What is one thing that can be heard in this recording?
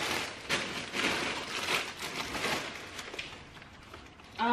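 Plastic grocery bags rustle and crinkle.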